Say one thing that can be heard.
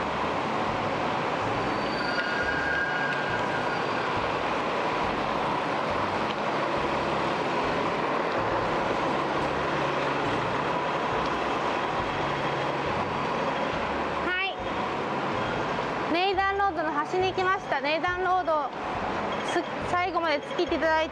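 A bus engine hums nearby.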